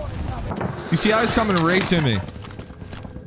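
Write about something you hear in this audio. A young man shouts with excitement through a microphone.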